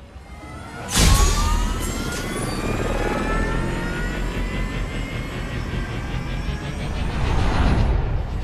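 A hovering aircraft's engines roar and whine, slowly rising in pitch.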